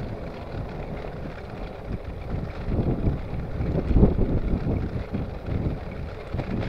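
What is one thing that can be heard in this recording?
Wind rumbles against a microphone while riding outdoors.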